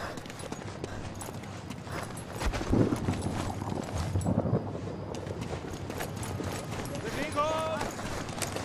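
Heavy footsteps thud on stone as a soldier moves along.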